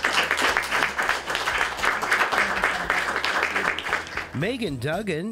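A crowd claps and applauds.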